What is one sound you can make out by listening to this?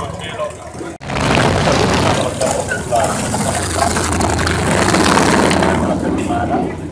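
A motorcycle engine rumbles loudly as it rides slowly past.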